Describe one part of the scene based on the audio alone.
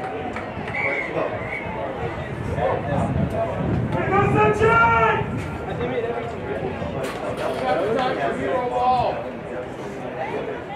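Young men shout and call out outdoors in the distance.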